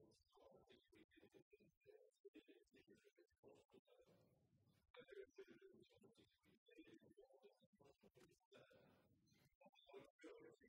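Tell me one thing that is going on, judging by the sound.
A middle-aged man reads out a speech calmly into a microphone in a large echoing hall.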